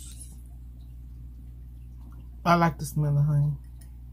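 A woman slurps and chews noodles close to the microphone.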